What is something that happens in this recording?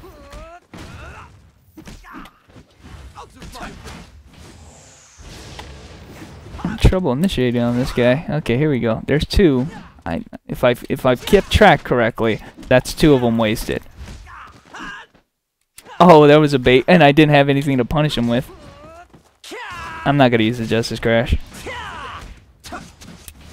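Swords swish and clash in quick strikes.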